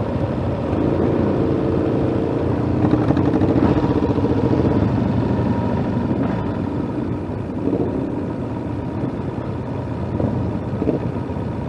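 Motorcycle engines rev and pull away along a road.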